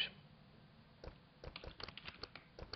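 Keyboard keys click quickly as someone types.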